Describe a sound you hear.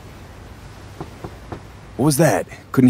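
A fist knocks on a door.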